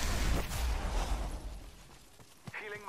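A deep rushing whoosh roars and then fades away.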